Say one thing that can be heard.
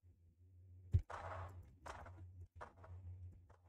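A gun fires a few loud shots.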